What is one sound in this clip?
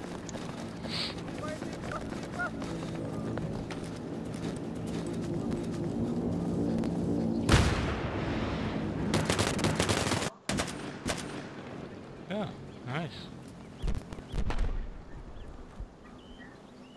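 Gunshots crack in bursts.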